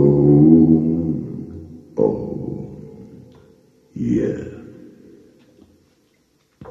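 A young woman sings loudly into a microphone, with her voice echoing and fading through loudspeakers.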